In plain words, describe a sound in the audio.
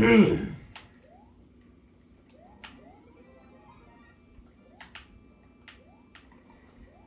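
Short springy jump sounds from a video game play through a speaker.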